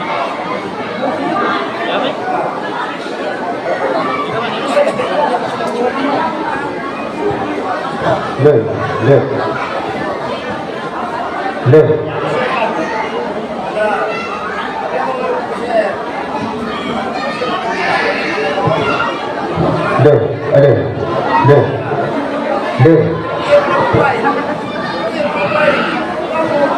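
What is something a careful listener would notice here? A woman sings loudly through a microphone over a loudspeaker.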